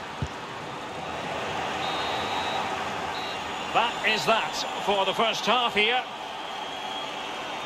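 A large stadium crowd roars and chants steadily in the distance.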